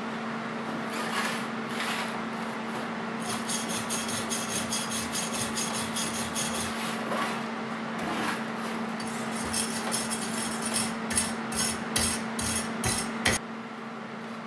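A wire brush scrubs rapidly against a metal pipe.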